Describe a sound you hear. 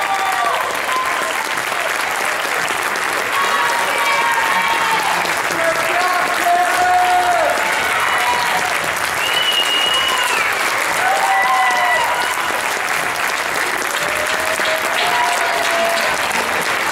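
A crowd cheers and whoops in a hall.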